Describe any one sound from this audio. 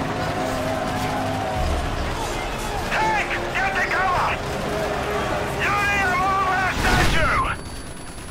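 Explosions rumble in the distance during a battle.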